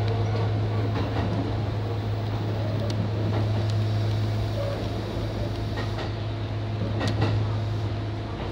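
A train hums steadily as it runs along the track.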